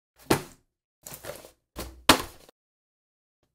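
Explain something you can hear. A cardboard box is handled with soft knocks and scrapes.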